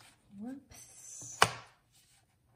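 A paper trimmer's blade slides across paper with a soft scrape.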